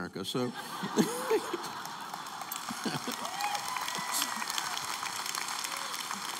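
An audience laughs and murmurs in a large hall.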